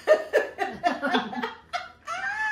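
A woman laughs loudly close by.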